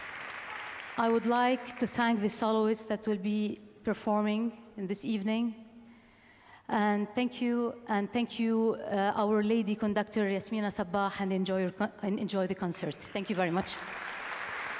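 A woman speaks calmly into a microphone over a loudspeaker.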